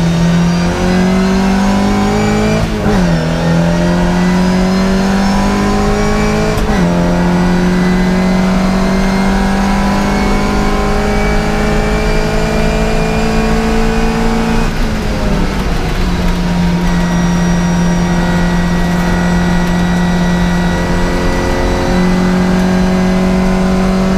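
A classic Mini's engine races at full throttle, rising in pitch and dropping with each gear change.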